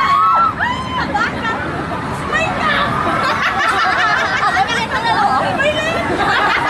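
A crowd of people shrieks and chatters nearby.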